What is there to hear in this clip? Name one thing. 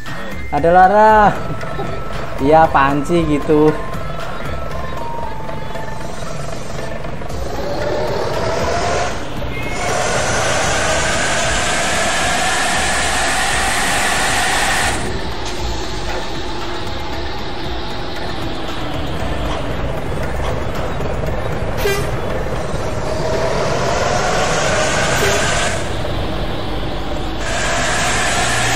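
A bus engine drones steadily, rising and falling as it drives.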